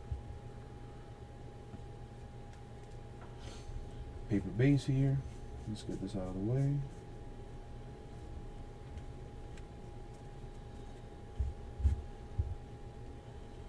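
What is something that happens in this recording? Trading cards rustle and flick softly as they are sorted by hand.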